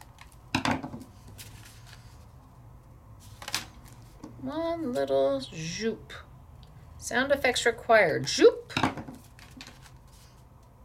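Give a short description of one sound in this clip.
Card rustles and taps as hands handle it.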